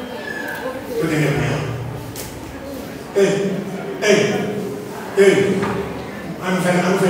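An elderly man preaches with animation into a microphone, heard through loudspeakers in a large echoing hall.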